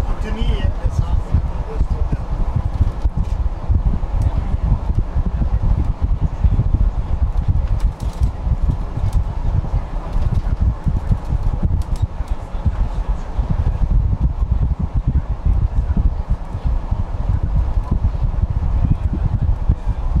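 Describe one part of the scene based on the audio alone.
A vehicle's engine rumbles low and steady while driving.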